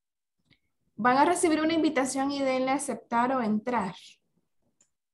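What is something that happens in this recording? A young woman speaks with animation over an online call.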